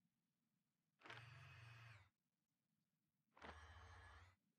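Short soft interface tones swell and fade a few times.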